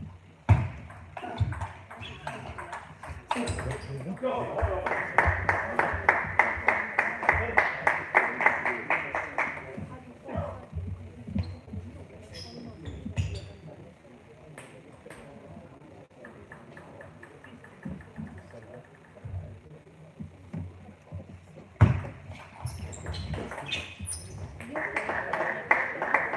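A table tennis ball clicks back and forth off paddles and the table in a rally.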